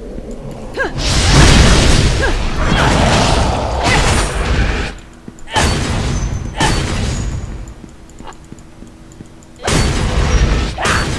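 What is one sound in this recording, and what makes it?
Magic blasts burst and crackle in a fight.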